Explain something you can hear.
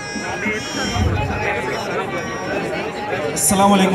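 A young man speaks into a microphone over loudspeakers in a large echoing hall.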